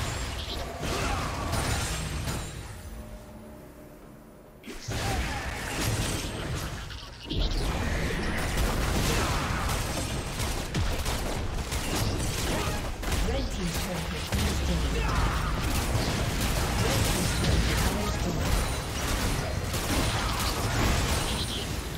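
Magic blasts and weapon hits crackle and burst in a busy fight.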